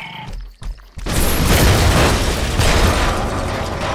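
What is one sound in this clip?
Crates smash apart with a loud crash.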